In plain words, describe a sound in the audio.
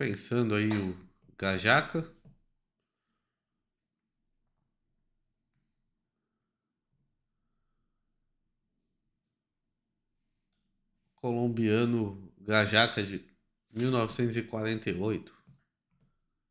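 A young man speaks calmly and close into a microphone, with long pauses.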